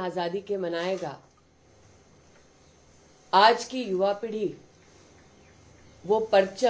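A middle-aged woman speaks into a microphone in short phrases with pauses.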